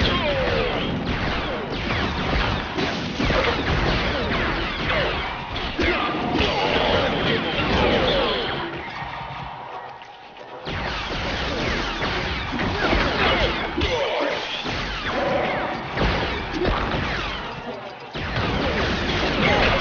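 Bricks clatter as they break apart.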